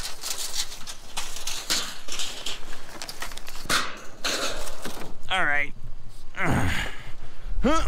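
Metal scrap clatters and rattles as it is thrown down.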